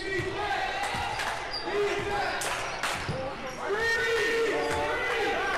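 Spectators murmur in a large echoing gym.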